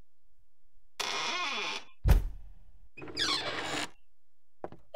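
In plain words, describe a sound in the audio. A door creaks open with a loud thud.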